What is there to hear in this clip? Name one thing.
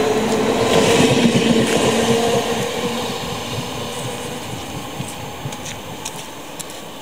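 A train rumbles past close by and slowly fades into the distance.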